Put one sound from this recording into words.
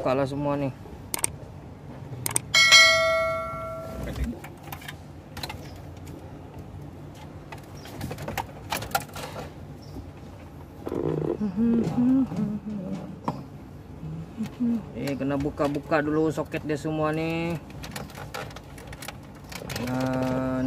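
Plastic connectors click and rattle as wires are handled.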